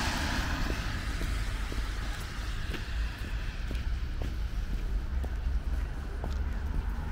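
Footsteps crunch steadily on packed snow close by.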